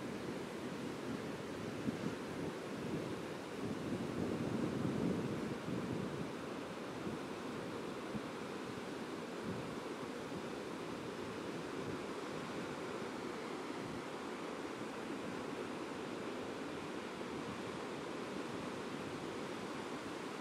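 Ocean waves break and wash steadily onto the shore.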